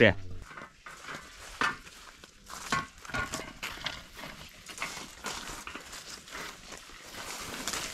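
A man hacks at dry undergrowth with a long tool.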